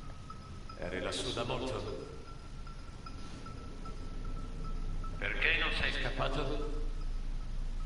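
An elderly man speaks in a low, tense voice.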